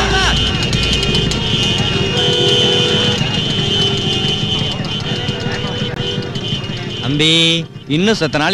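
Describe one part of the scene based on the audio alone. Motorbike engines idle and rumble nearby.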